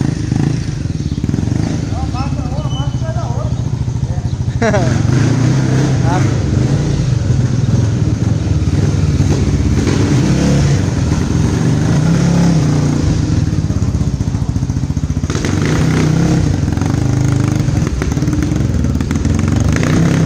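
A motorcycle engine idles with a deep, steady rumble and revs up now and then.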